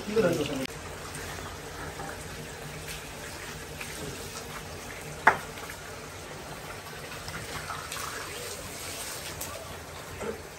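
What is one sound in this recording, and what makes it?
Butchers' knives slice through raw beef.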